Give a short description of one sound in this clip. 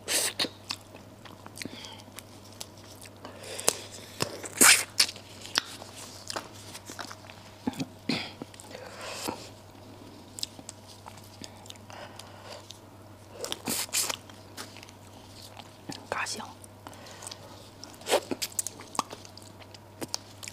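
Gloved hands tear apart soft braised meat with wet, sticky sounds.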